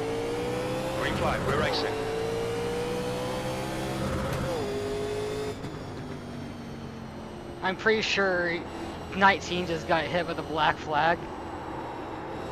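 A race car engine drones steadily, then drops to a quieter hum.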